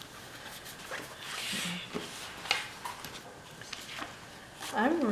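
Pages of a spiral-bound planner flip and tap.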